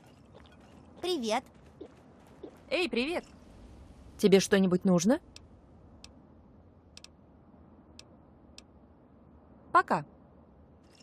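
A young woman speaks calmly in short phrases.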